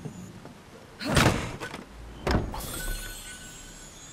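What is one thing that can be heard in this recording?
A wooden chest lid creaks open with a thump.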